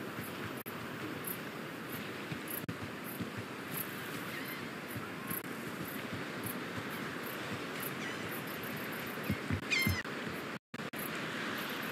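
Footsteps crunch steadily on sand and wooden planks.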